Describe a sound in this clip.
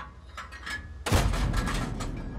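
A tank cannon fires.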